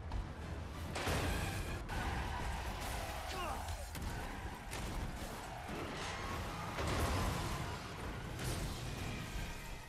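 A loud crash of metal bursts with showers of sparks.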